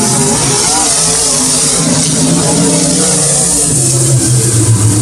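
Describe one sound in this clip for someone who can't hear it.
Race car engines roar loudly nearby.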